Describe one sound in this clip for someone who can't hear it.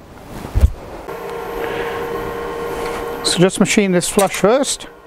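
An electric wood lathe motor hums as it spins a wooden blank.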